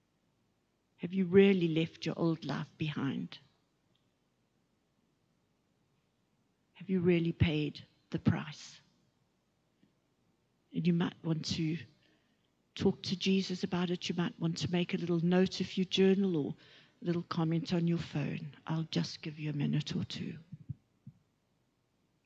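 A middle-aged woman speaks calmly into a microphone, in short phrases with pauses.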